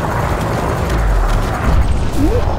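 A ship explodes with a loud blast.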